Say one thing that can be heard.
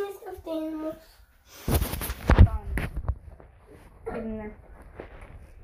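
A boy speaks close to the microphone.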